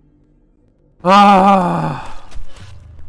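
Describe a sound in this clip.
A young man shouts loudly into a nearby microphone.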